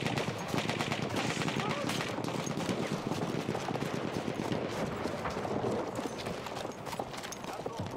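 Footsteps crunch quickly over snow and rubble.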